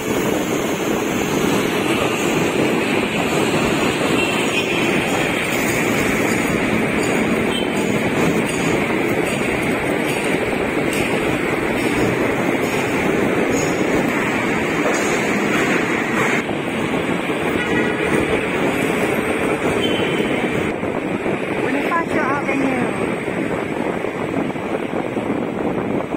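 Motorcycle engines hum as they pass close by.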